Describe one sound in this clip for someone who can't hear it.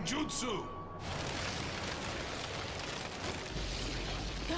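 A cloud of smoke bursts out with a loud rushing whoosh.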